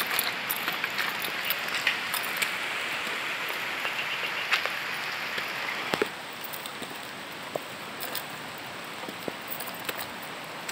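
Footsteps crunch on a dirt path through leafy plants.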